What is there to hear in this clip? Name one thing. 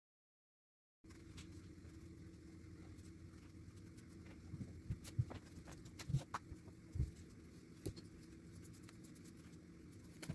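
A pen scratches faintly on a paper plate.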